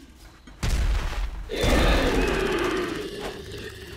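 An explosion booms with a rushing roar.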